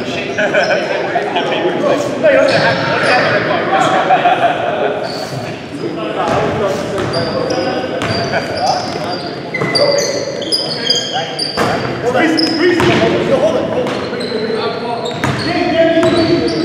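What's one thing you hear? Young men call out to each other in a large echoing hall.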